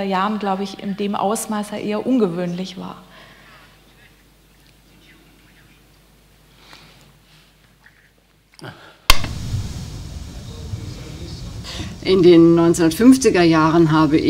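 A woman speaks calmly through a microphone in a large room.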